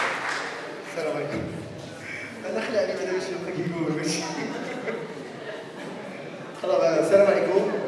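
A man speaks with animation through a microphone and loudspeakers.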